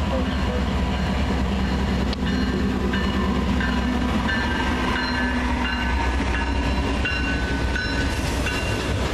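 Steel wheels squeal and clatter on the rails.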